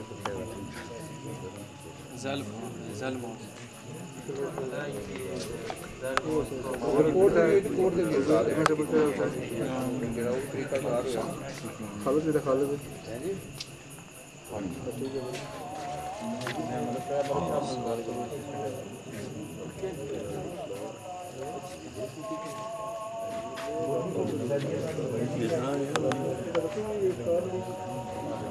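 Several men talk and murmur together close by.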